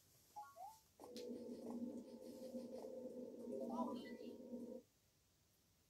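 Bouncy video game music plays through a small speaker.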